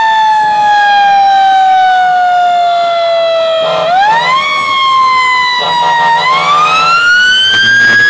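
A fire truck engine rumbles as it drives.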